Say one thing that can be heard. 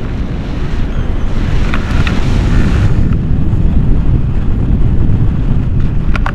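Strong wind roars and buffets outdoors.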